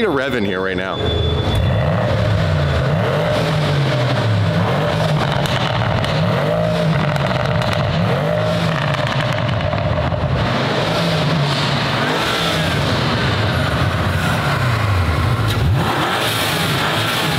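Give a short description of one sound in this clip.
A car engine rumbles steadily nearby.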